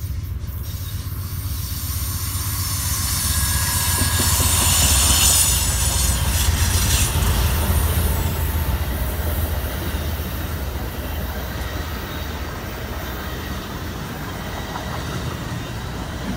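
A passenger train rumbles closer and clatters past on the tracks, close by.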